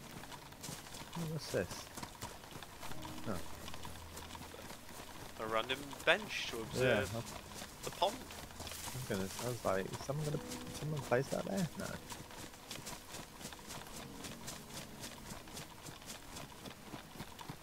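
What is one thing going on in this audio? Footsteps rustle quickly through grass and undergrowth.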